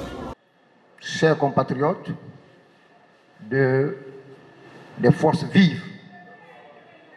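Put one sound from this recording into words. A man speaks into a microphone through a loudspeaker, with pauses.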